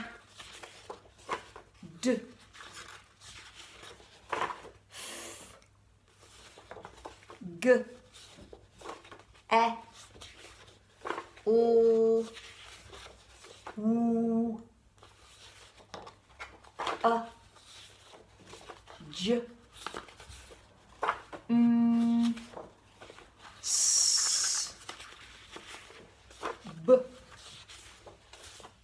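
Paper cards rustle and flap as they are flipped over one by one.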